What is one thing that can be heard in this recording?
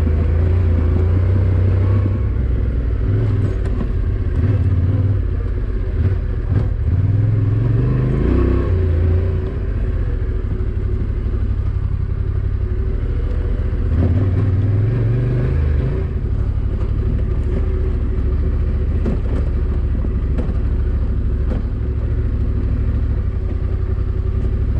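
A motorcycle engine rumbles steadily and revs up and down.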